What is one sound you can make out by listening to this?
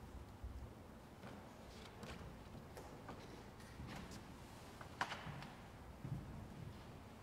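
Footsteps echo faintly in a large, reverberant hall.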